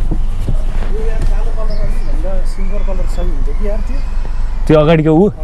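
A man speaks from just outside a car window.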